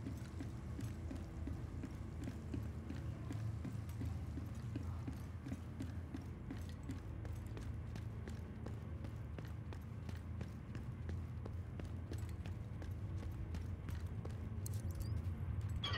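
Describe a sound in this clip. Boots tread steadily on hard floors and metal grating.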